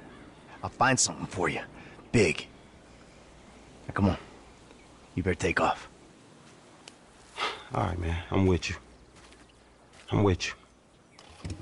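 A young man talks casually, close by.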